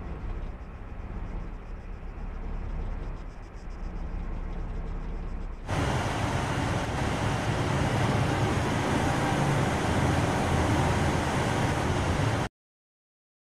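Armoured vehicles rumble along with engines droning.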